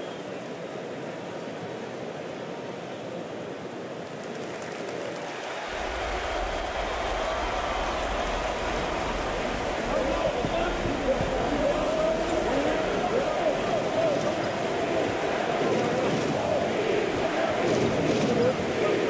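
A large crowd cheers and roars in a big echoing arena.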